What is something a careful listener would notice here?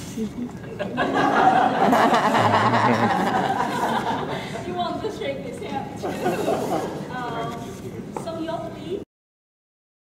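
A young boy reads out aloud, close by.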